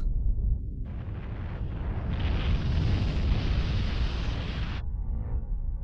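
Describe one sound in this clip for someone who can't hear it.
A loud rushing blast roars through billowing smoke.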